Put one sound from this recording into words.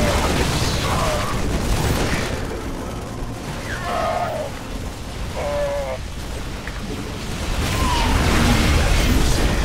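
Explosions rumble and boom.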